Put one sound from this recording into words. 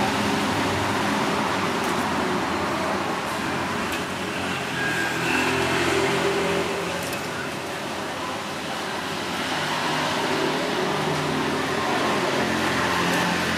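Metal tongs clink against a wire grill.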